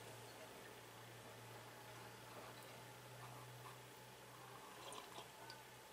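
A man sips hot coffee with a soft slurp.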